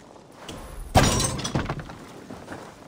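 A loud burst crackles and sizzles, then fades.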